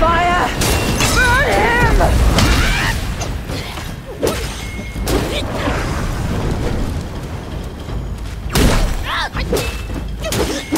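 A warrior's blade whooshes and clangs in quick strikes.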